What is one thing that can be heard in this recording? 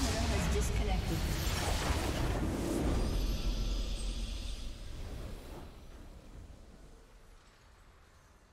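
A deep magical explosion booms and slowly fades away.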